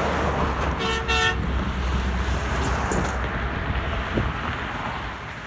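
Traffic roars steadily past on a highway outdoors.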